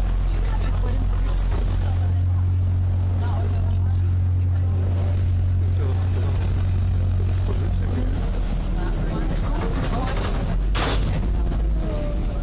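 Water splashes and churns in a boat's wake.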